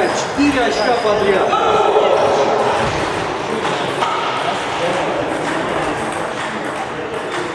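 Table tennis balls click against paddles and tables.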